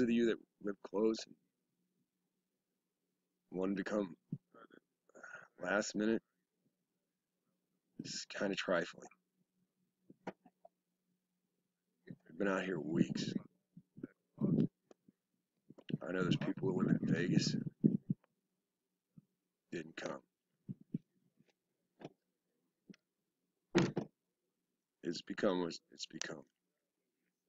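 A middle-aged man speaks calmly and close up, in short phrases with pauses.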